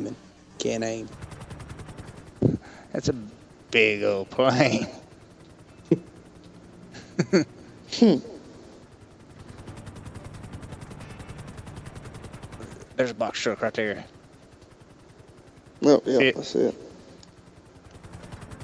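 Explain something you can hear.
A helicopter's rotor chops steadily overhead.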